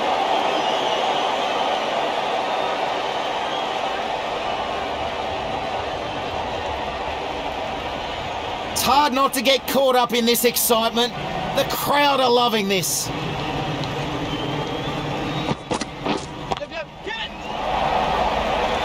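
A large crowd roars steadily in a stadium.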